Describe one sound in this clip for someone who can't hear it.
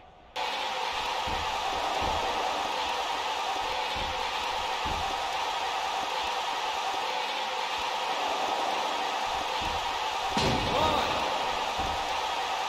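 Bodies thud heavily on a wrestling ring mat.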